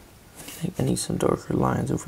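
A felt-tip marker scratches softly on paper.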